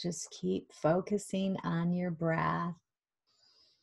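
A middle-aged woman speaks calmly through an online call.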